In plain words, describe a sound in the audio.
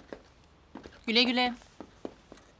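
A woman answers calmly nearby.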